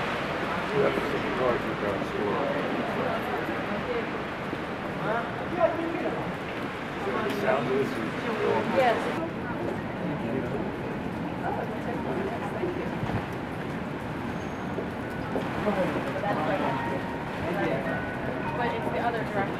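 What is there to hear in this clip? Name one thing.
A piano plays a melody.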